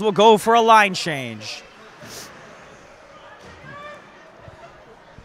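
Hockey skates scrape across the ice.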